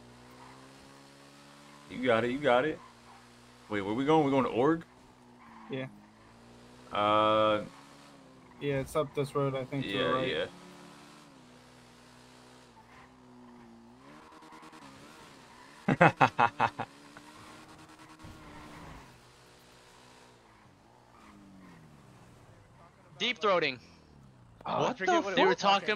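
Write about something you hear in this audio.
A motorcycle engine hums and revs up and down.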